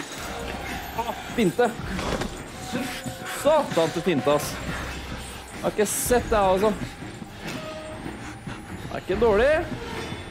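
A young man talks excitedly into a close microphone.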